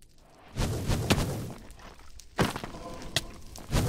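Blows strike a fiery creature with sharp thuds.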